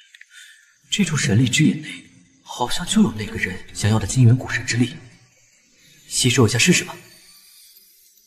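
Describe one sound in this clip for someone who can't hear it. A young man speaks calmly and clearly, close to the microphone.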